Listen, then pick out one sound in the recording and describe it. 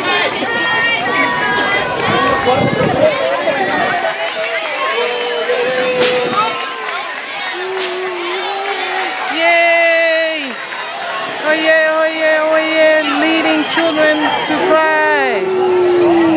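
A crowd of adults and children chatters and cheers outdoors.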